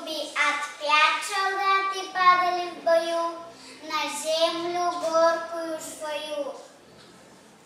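A young girl recites a poem with animation in a large echoing hall.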